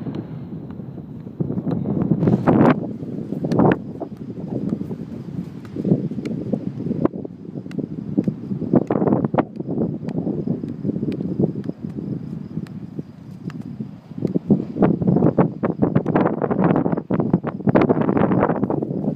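A football thumps against a foot as it is kicked up and juggled.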